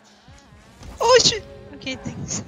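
A ball is struck with a loud thump.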